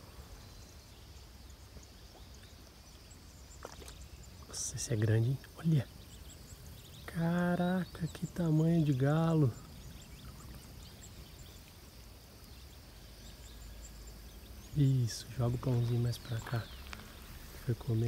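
A swimming animal paddles through water with soft splashing.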